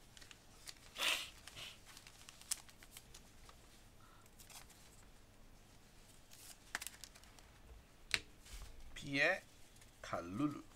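A plastic card holder clicks and rustles as it is handled.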